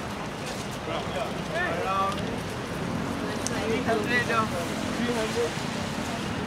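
A man and a woman talk briefly as they walk past.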